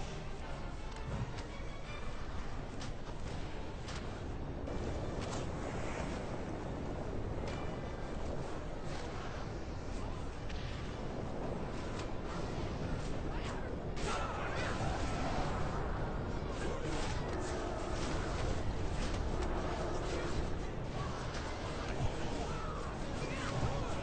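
Fiery spell blasts roar and crackle in a game battle.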